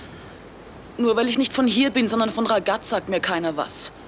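A young woman speaks close by in an upset, pleading voice.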